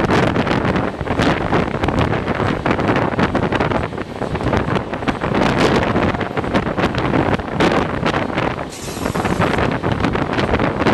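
A passenger train rumbles along the track at speed.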